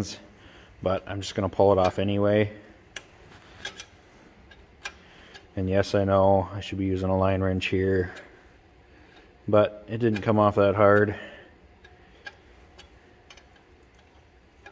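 A metal wrench clicks and taps against a bolt.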